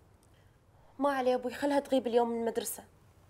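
A young woman speaks in a tearful, strained voice close by.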